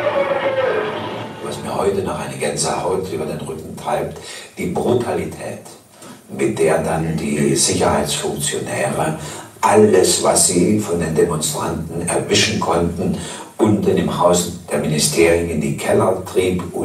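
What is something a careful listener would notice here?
A young man speaks calmly into a microphone, heard through loudspeakers in an echoing hall.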